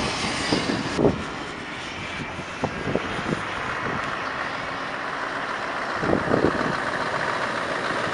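A truck engine rumbles as it pulls around a bend and approaches.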